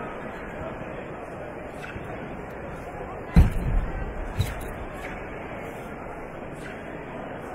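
A large crowd murmurs in a big echoing hall.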